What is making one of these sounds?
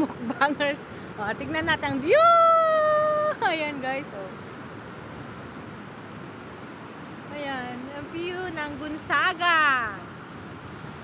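A woman talks cheerfully and close by.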